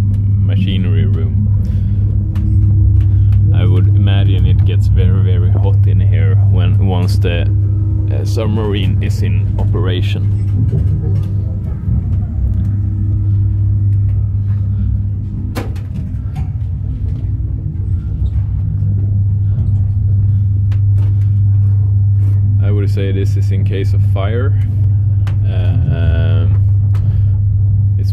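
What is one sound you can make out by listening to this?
A steady low machine hum drones throughout.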